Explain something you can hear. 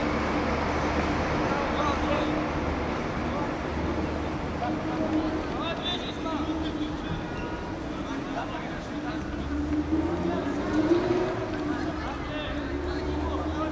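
A crowd of spectators chatters and calls out across an open outdoor field.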